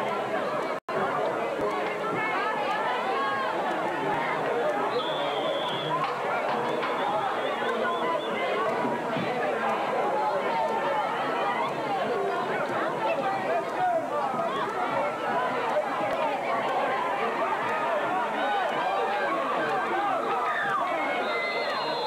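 A crowd of spectators chatters and cheers loudly close by, outdoors.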